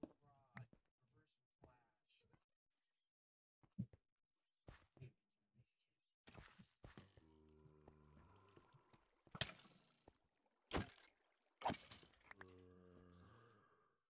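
A pickaxe chips at stone in quick, sharp knocks.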